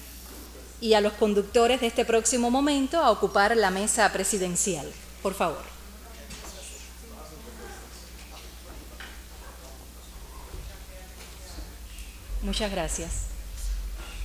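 A woman speaks through a microphone over loudspeakers in a large hall.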